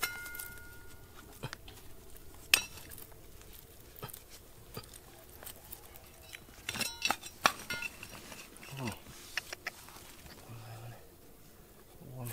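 Fingers brush and scrape grit off a rock.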